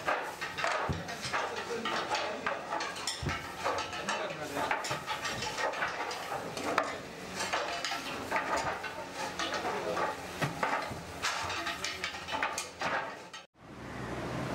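Clay tiles clink and clatter as they are stacked.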